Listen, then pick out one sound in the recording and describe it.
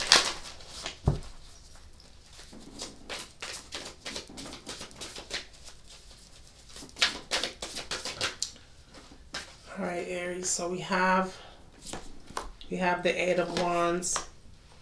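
Playing cards riffle and flick as they are shuffled.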